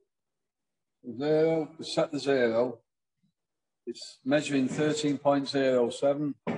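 A man talks calmly, heard through an online call.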